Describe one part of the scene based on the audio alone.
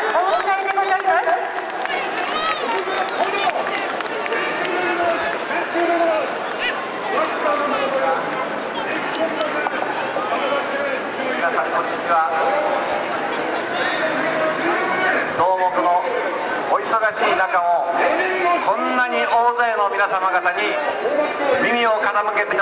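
A large outdoor crowd murmurs and chatters.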